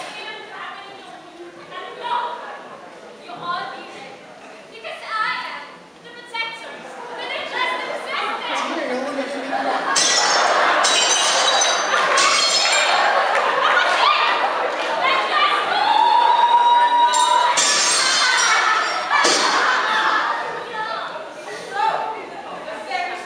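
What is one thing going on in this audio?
Young women sing together on a stage, heard from a distance in a large hall.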